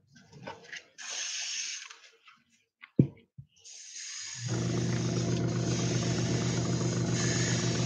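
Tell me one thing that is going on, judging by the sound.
An airbrush sprays air with a steady hiss.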